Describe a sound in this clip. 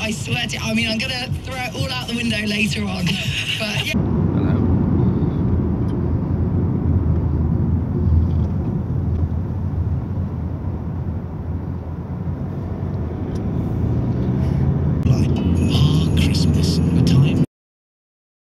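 A car engine rumbles steadily while driving on a road.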